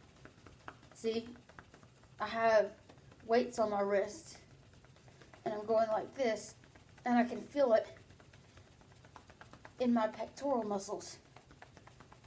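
A young woman speaks close by in short bursts, with animation.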